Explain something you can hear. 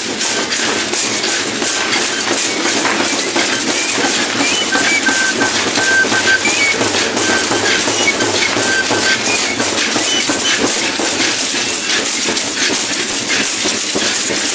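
A drum beats steadily in a rhythm.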